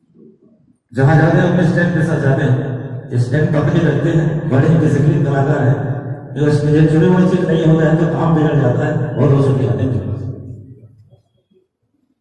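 A man sings loudly through a microphone and loudspeakers.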